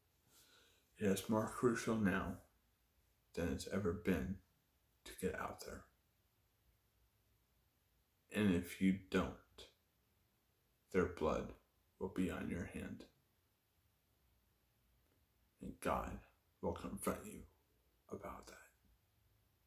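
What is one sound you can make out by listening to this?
A young man speaks calmly and close up, in short bursts with pauses.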